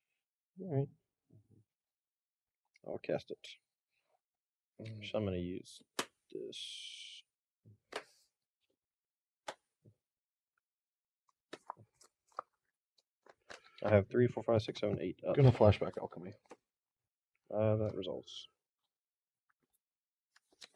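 Playing cards slap and slide softly on a table.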